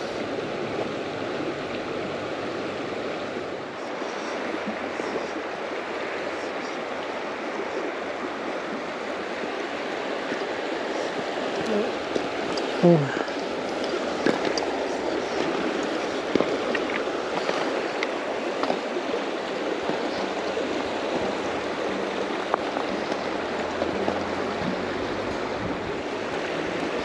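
A river rushes steadily over rocks close by.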